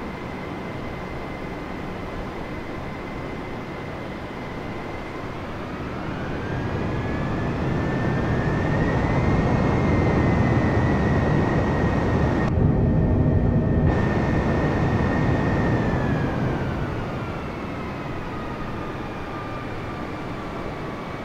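Jet engines roar with a high whine, swelling louder and then easing back.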